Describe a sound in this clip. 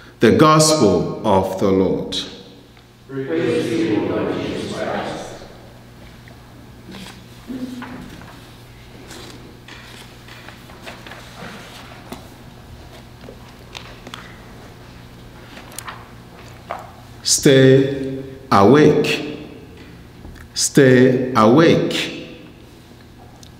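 A man speaks slowly and calmly into a microphone in an echoing room, with long pauses.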